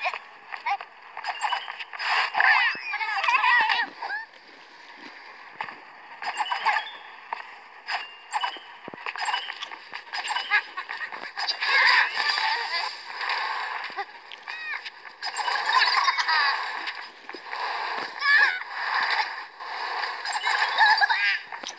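Bright little chimes ring out again and again as pickups are collected in a game.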